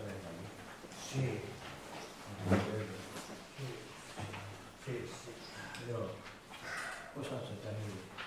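A woman speaks calmly to an audience in a room with a slight echo.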